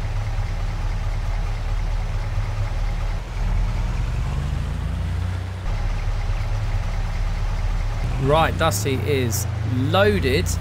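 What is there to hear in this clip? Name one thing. A pickup truck engine rumbles steadily as it drives.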